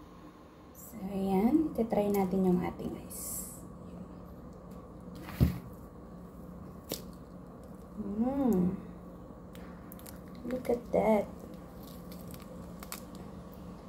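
Plastic wrapping crinkles as hands squeeze and break a frozen treat.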